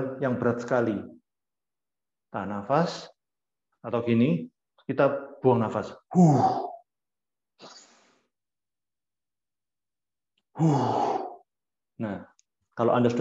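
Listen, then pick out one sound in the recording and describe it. A young man speaks calmly in short phrases, heard close through an online call.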